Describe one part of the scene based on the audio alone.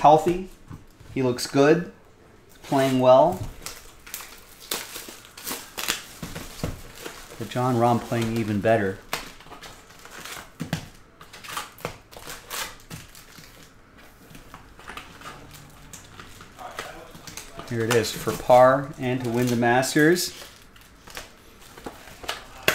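Cardboard boxes and card packs rustle and tap as they are handled.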